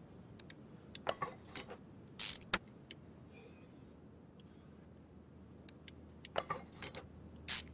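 Metal car parts clink and clunk as they are unbolted and removed.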